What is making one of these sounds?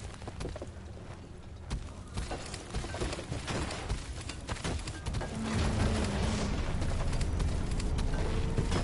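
Rocks crack and crumble apart.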